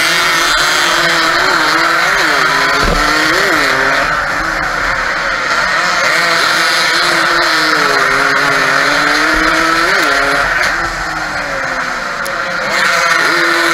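Other motorcycle engines whine nearby.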